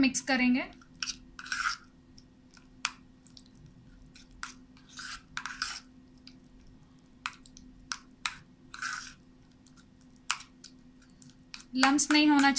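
A spoon scrapes and clinks against a bowl.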